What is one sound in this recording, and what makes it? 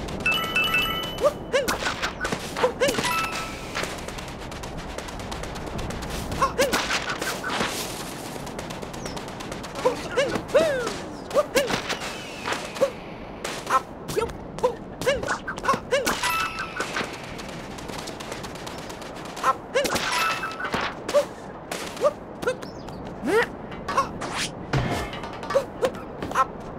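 Short cartoonish sound effects chirp and pop as a game character jumps and climbs.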